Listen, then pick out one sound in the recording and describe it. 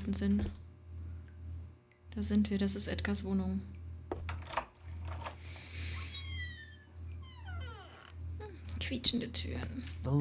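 A young woman speaks quietly into a close microphone.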